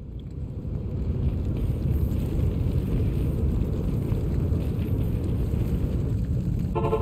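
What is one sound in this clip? A magic portal hums with a low, steady drone.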